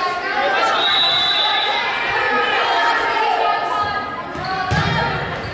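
Teenage girls chatter and call out across a large echoing hall.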